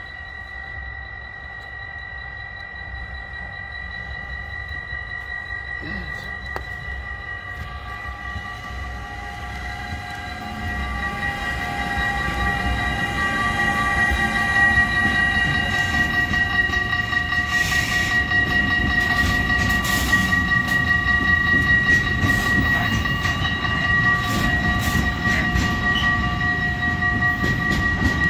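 A long freight train approaches and rumbles past close by, growing louder.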